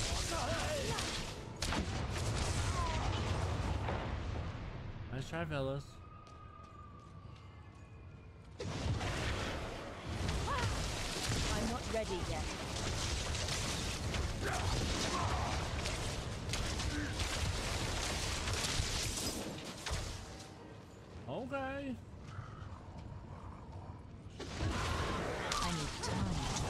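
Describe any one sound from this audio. Game spells crackle and blast in loud bursts.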